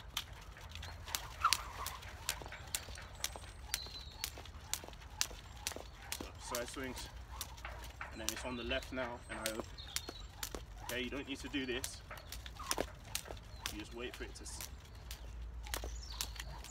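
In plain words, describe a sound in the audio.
A jump rope clicks rhythmically against pavement.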